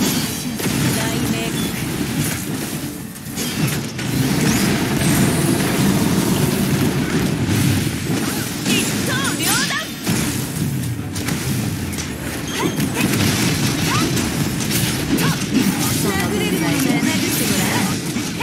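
Game energy blasts whoosh and crackle.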